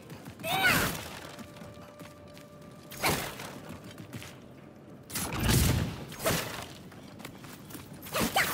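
An axe swooshes through the air in heavy swings.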